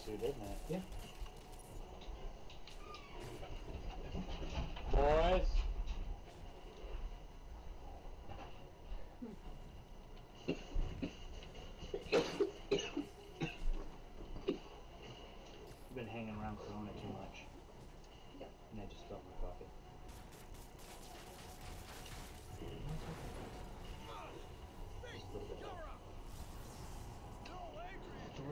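Young men chat and react with animation nearby.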